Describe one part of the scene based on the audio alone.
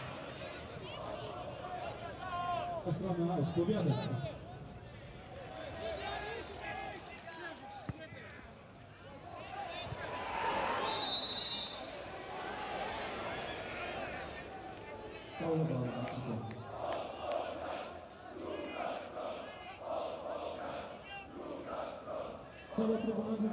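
A large crowd cheers and chants throughout in an open stadium.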